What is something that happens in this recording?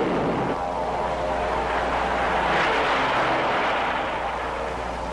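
An aeroplane engine roars overhead.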